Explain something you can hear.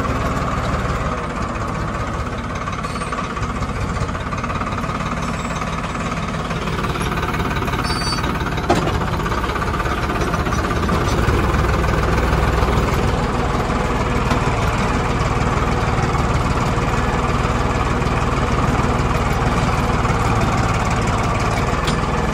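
A plough scrapes and churns through dry soil.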